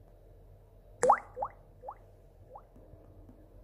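A small speaker gives a series of quick rising beeps.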